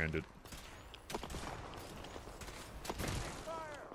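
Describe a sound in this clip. A heavy gun fires and an explosion booms.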